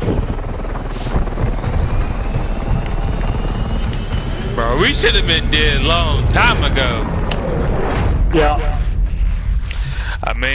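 A helicopter's rotor thumps and roars steadily.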